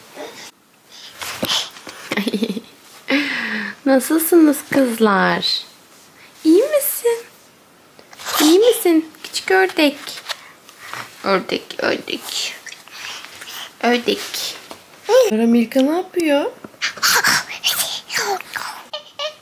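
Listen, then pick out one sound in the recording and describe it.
A baby babbles and coos close by.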